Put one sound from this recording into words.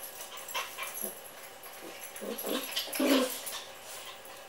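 Dogs growl and grumble as they play.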